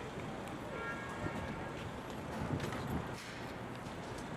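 Footsteps tap on a pavement close by.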